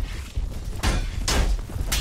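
Horses gallop over the ground.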